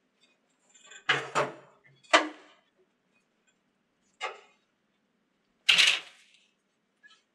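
Items clatter on a metal trolley.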